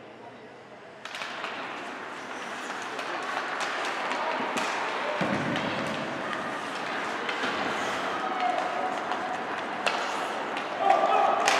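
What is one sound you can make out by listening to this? Skates scrape and carve across the ice.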